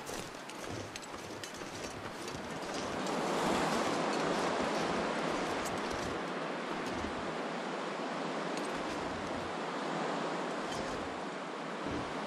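Wind blows steadily over snow.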